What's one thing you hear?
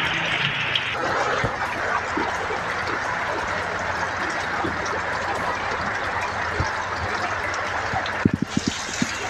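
Floodwater rushes and churns loudly.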